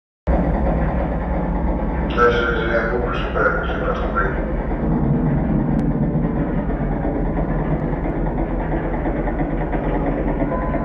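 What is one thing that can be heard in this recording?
Loud, steady music with deep bass plays from electronic equipment.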